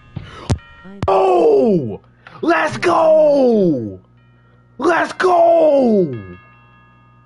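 A young man yells loudly in alarm into a close microphone.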